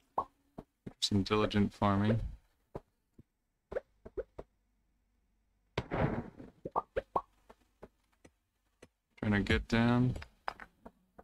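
A man speaks with animation into a nearby microphone, in short bursts.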